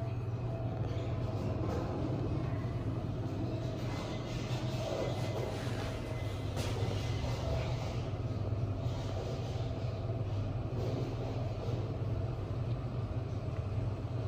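A lift car hums steadily as it moves.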